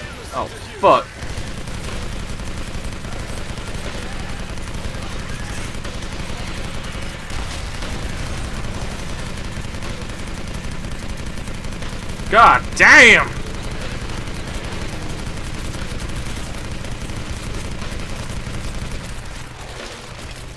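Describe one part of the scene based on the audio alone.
A heavy machine gun fires in long, rattling bursts.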